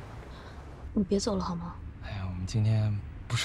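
A young woman speaks quietly up close.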